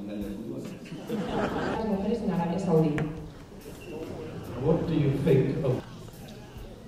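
A middle-aged woman asks a question through a microphone in a large room.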